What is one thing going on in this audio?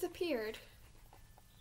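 A young girl speaks briefly, close by.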